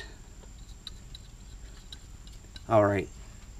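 A metal lug nut clicks faintly as a hand turns it.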